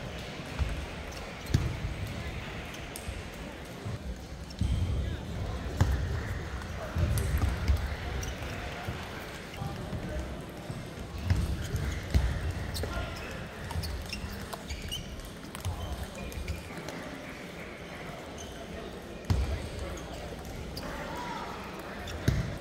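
A ping-pong ball clicks back and forth off paddles and a table in a large echoing hall.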